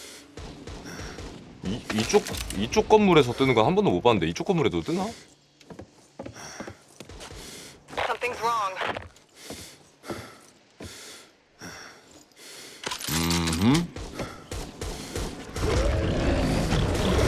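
Footsteps thud on wooden floors and ground.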